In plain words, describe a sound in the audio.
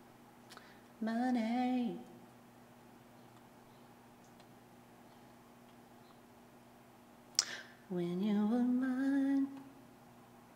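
A woman sings short sustained notes close to a microphone.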